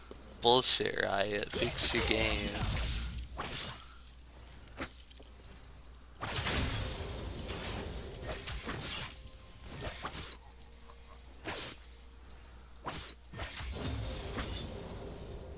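Weapons strike and clash in quick hits.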